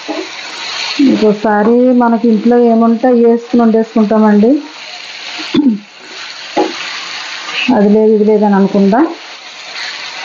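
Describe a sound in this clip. A middle-aged woman speaks nearby.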